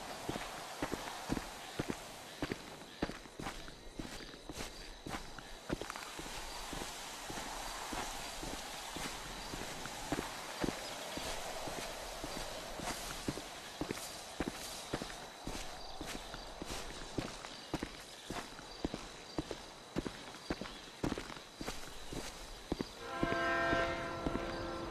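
Footsteps crunch over dry grass and gravel at a steady walking pace.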